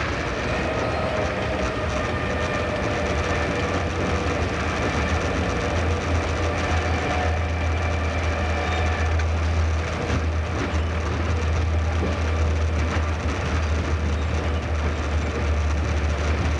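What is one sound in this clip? Train wheels click over rail joints and points.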